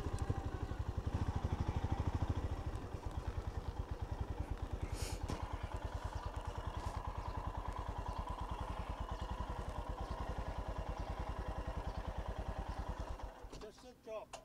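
A motorcycle engine idles with a steady throb.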